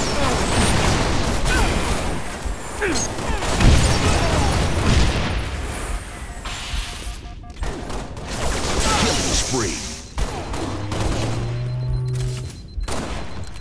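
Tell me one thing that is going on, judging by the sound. Gunfire and blasts ring out from a video game.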